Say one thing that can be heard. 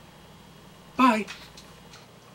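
A man hums with pleasure close by.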